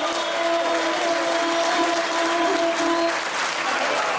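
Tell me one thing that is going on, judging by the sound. A bowed string instrument plays a long, steady, droning note.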